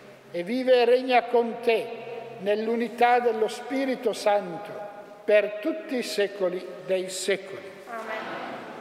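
An elderly man chants into a microphone in a large echoing hall.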